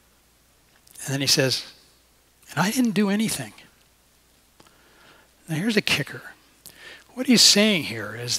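A middle-aged man speaks expressively into a headset microphone, in phrases with pauses.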